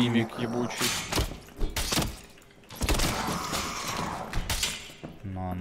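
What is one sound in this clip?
A blade strikes a creature with heavy wet thuds.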